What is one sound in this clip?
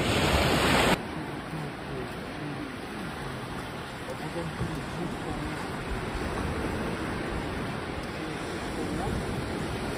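Gentle surf breaks steadily along a beach.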